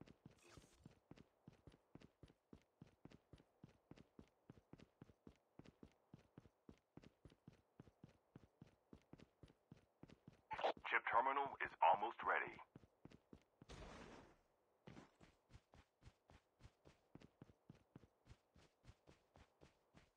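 Quick footsteps run steadily on hard ground.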